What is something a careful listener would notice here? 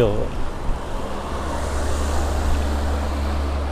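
A small car drives past close by with an engine hum.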